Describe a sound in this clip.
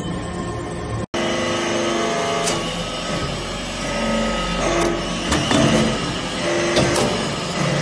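A hydraulic press hums and whines steadily.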